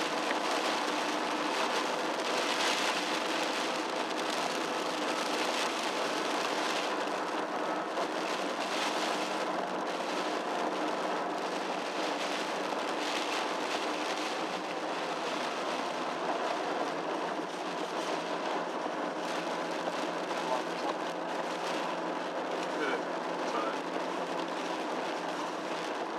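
Tyres roll on a wet road with a steady hiss.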